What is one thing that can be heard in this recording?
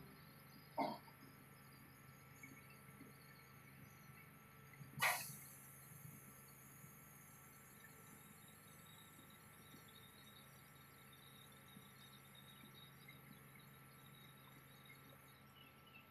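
Water laps gently against a quay.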